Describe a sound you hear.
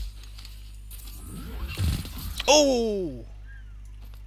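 A futuristic rifle fires with a sharp burst.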